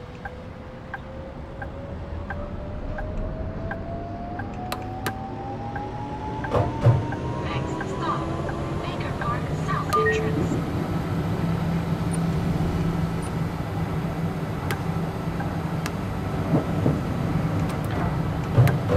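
A tram rumbles and clatters over rails.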